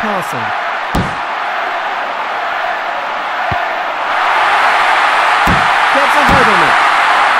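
A ball is kicked with dull thuds now and then.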